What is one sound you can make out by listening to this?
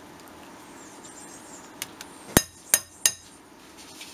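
A fork taps and scrapes against a glass bowl.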